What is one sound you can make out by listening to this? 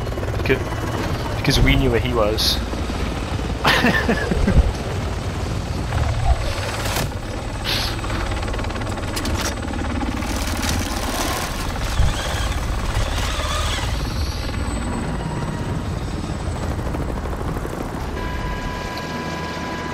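A helicopter's rotor thumps loudly overhead with a deep, steady roar.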